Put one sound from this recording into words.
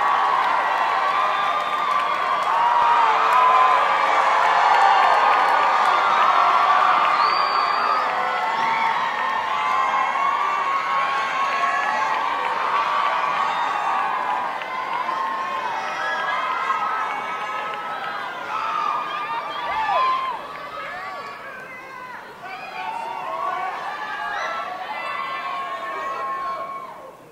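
A group of young singers performs a cappella in a large echoing hall.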